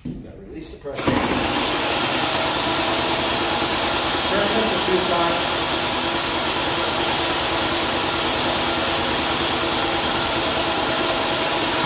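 A paint sprayer pump starts up and runs with a loud, steady whirring hum.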